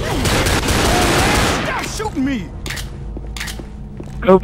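Pistol shots crack sharply.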